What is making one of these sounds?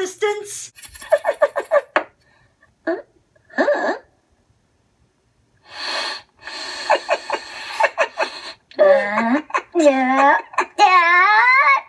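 Two high, silly cartoon-like voices talk back and forth.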